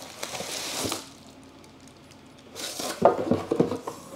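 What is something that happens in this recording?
A cardboard box slides across a wooden tabletop.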